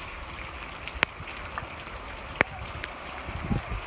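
Raindrops tap sharply now and then close by.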